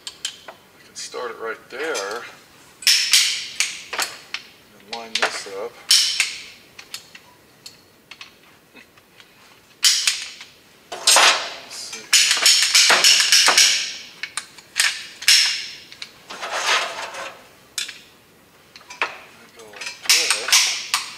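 An older man talks calmly nearby.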